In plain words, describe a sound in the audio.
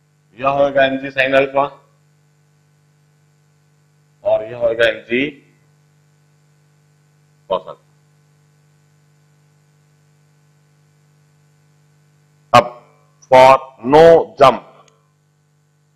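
A middle-aged man explains calmly into a close microphone, in short bursts with pauses.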